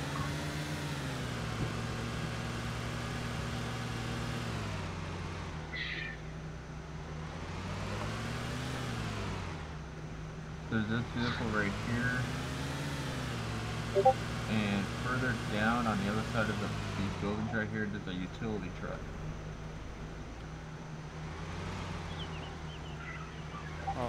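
A car engine revs up and drops repeatedly as the car shifts gears.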